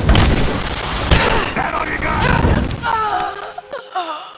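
A loud explosion booms and blasts.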